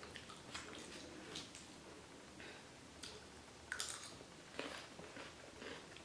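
A young woman crunches on crisp salad while chewing.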